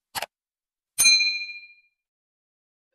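A small bell rings briefly.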